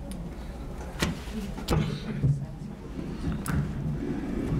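A microphone thumps and rustles as it is handled.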